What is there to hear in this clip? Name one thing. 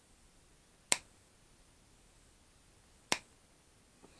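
Wire cutters snip through a wire with sharp clicks.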